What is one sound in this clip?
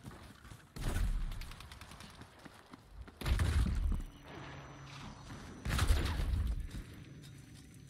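Loud explosions boom close by, one after another.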